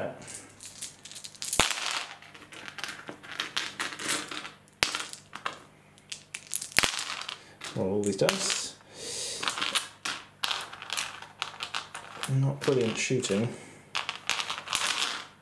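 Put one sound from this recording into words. Dice clatter and roll across a hard surface.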